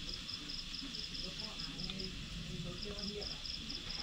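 Chopsticks clink softly against a bowl.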